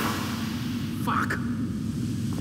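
A man curses sharply.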